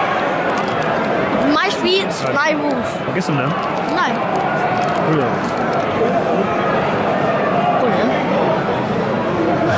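A crisp packet crinkles.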